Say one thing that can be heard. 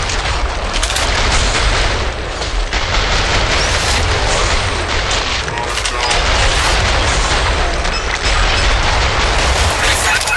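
Ice shards crack and shatter.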